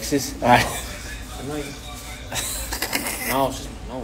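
A young man laughs.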